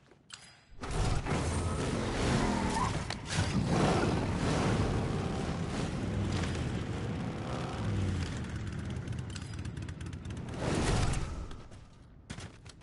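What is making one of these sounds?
Wind rushes past during a fast glide through the air.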